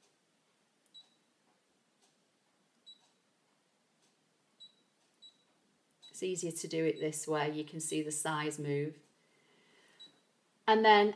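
A touchscreen beeps softly as it is tapped.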